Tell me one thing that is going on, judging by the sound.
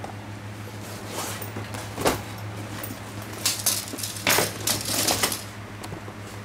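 A fabric bag rustles and scrapes as it is lifted and moved.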